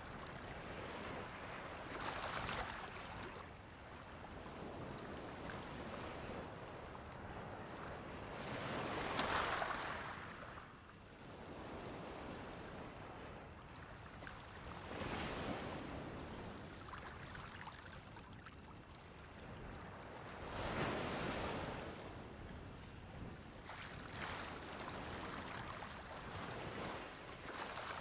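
Gentle waves wash onto a shore, swelling and fading in slow surges.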